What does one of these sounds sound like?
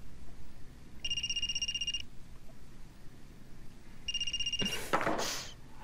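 A mobile phone rings with a short electronic tune.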